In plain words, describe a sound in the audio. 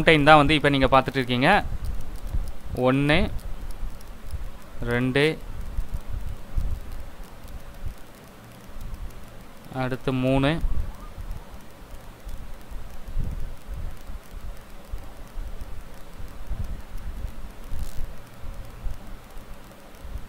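A firework fountain hisses and crackles outdoors as it sprays sparks.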